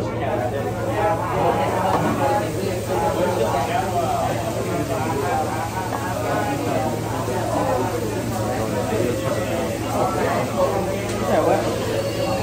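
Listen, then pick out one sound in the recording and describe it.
Several people talk over each other in a busy room.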